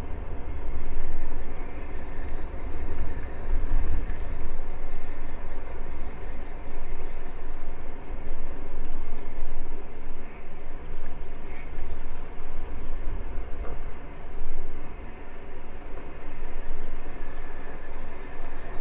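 Bicycle tyres hum over smooth pavement.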